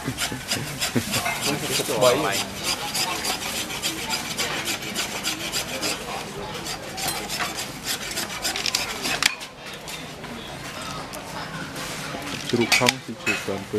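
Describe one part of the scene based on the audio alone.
A busy crowd chatters all around outdoors.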